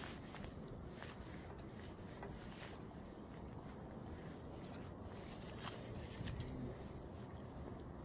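A cloth rubs and squeaks over a plastic lamp cover.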